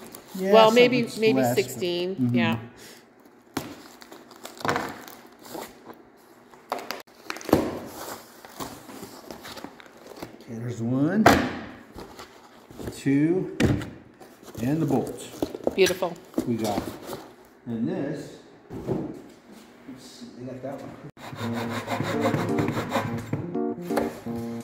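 A knife slices through cardboard.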